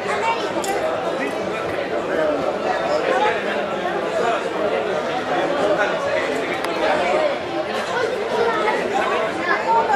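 A crowd chatters in the background.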